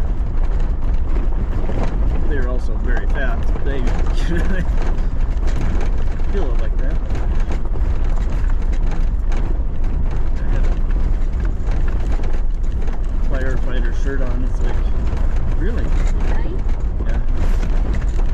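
Tyres crunch and rattle over a rough gravel road.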